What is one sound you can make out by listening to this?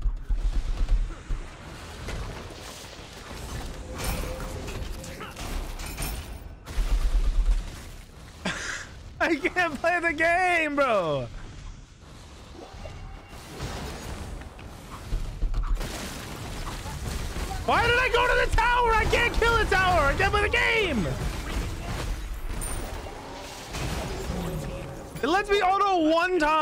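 Fantasy combat effects clash, whoosh and thump.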